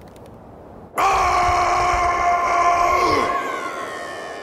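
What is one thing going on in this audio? An elderly man roars loudly and angrily.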